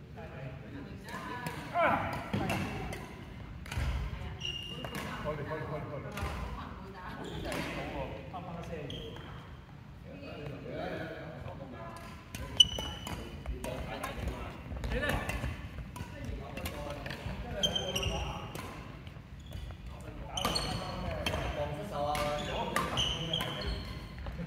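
Men talk and call out across an echoing hall.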